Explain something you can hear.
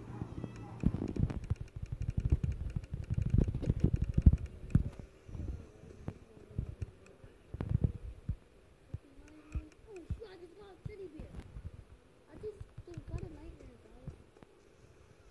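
A young boy talks quietly close to a microphone.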